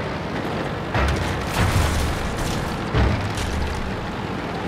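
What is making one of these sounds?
Shells explode with loud booms nearby.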